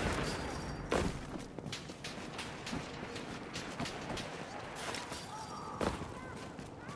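Boots thud onto the ground after climbing over a fence.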